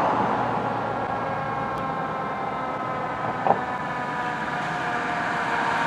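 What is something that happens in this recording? A fire engine's siren wails as it approaches.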